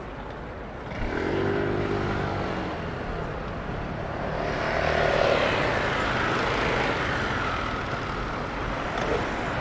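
A scooter engine hums past.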